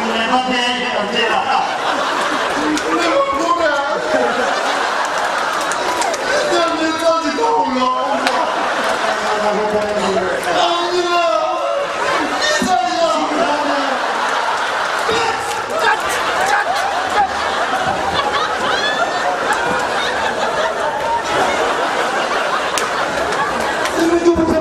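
A large crowd laughs and cheers outdoors.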